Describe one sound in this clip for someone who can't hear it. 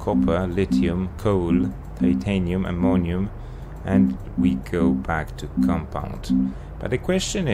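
Short electronic beeps sound as a menu option is switched.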